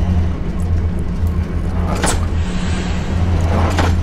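A metal lever clunks as it is pulled.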